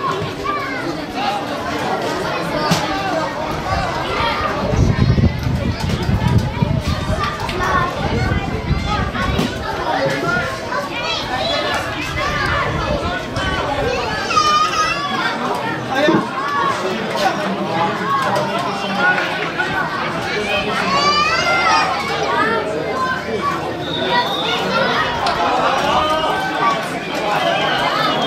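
Children shout to each other across the field.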